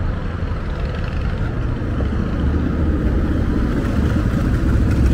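City traffic rumbles steadily nearby outdoors.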